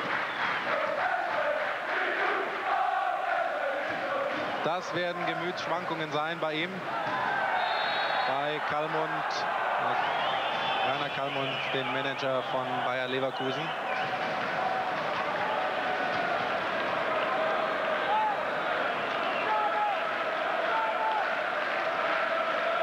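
A large crowd murmurs and chants steadily in an open stadium.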